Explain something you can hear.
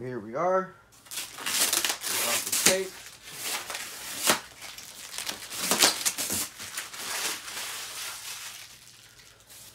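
Styrofoam squeaks and scrapes as a foam box is handled.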